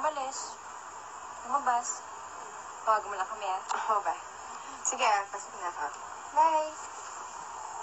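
A young woman speaks warmly and close by.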